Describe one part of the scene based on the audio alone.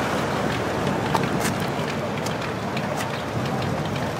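A vintage sedan's engine rumbles as the car drives off slowly.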